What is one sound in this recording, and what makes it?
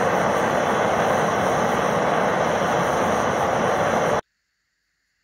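A furnace roars steadily and loudly, then cuts off abruptly.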